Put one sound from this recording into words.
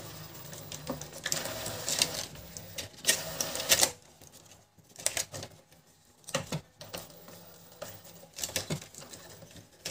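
Gloved fingers tap and scrape against plastic and metal parts.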